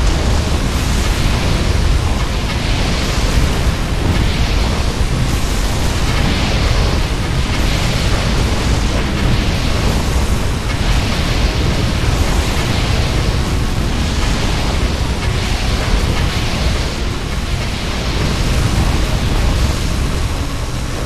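Shots crackle and pop in quick bursts.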